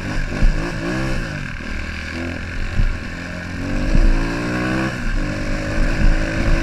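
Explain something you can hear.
A second dirt bike engine buzzes a short way ahead.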